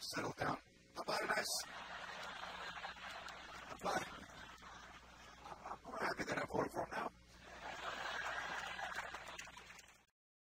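An audience laughs and applauds.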